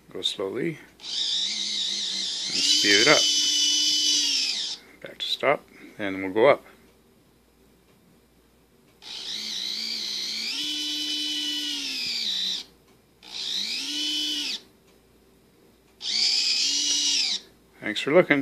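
A small electric motor whines in bursts as it winds a line, its pitch rising and falling.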